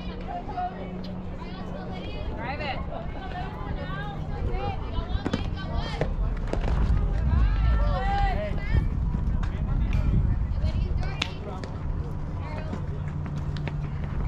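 Young women call out and cheer across an open field.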